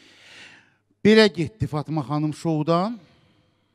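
A man speaks loudly into a microphone.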